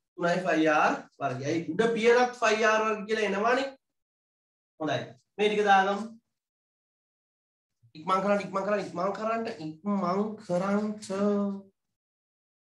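A young man speaks calmly and clearly, close by.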